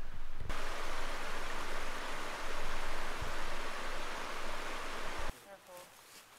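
Water rushes steadily over a small cascade in a stream.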